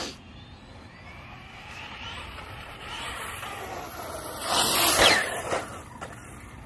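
A small electric motor whines as a toy car drives fast over pavement.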